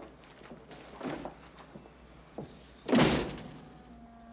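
A door opens and shuts with a thud.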